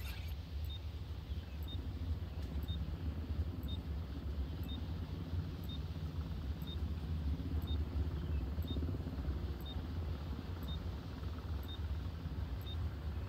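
A short electronic beep sounds once every second.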